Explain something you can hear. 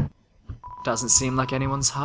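Short electronic blips chirp as a message types out.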